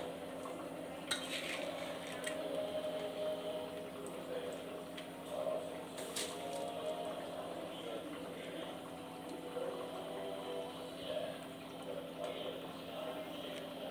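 Broth bubbles gently in a pot.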